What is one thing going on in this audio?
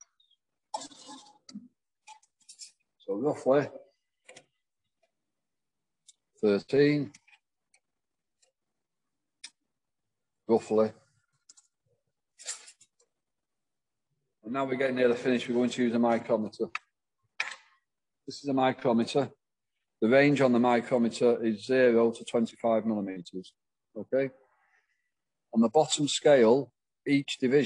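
A man speaks calmly into a microphone, heard as if through an online call.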